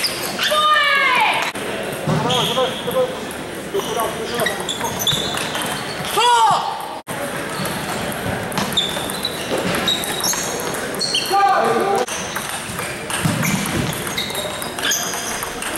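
A ping-pong ball clicks back and forth off paddles and a table in a large echoing hall.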